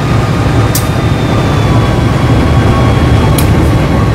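An oncoming train rushes past close by.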